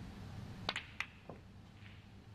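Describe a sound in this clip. Snooker balls click together as the cue ball hits the pack.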